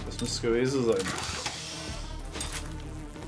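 A heavy metal chest clanks open with a soft hiss.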